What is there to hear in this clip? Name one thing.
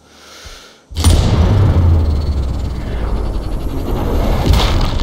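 A bullet rushes through the air with a loud, steady roar.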